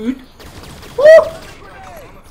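A young man shouts out suddenly close to a microphone.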